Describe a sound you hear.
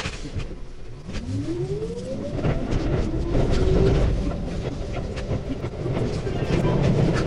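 A train's electric motor whines and rises in pitch as the train speeds up.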